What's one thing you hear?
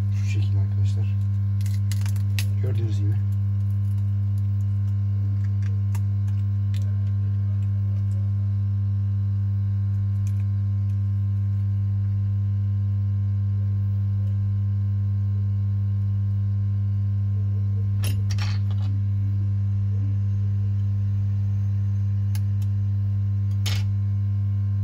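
Small plastic parts click and tap as a phone is taken apart by hand.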